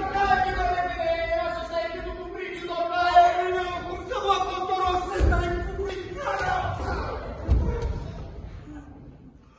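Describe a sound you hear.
A man shouts with animation in a large hall.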